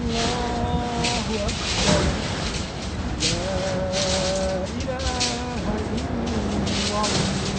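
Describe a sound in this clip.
A man chants the call to prayer in long held melodic phrases.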